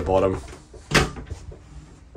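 A wooden cupboard door clicks open.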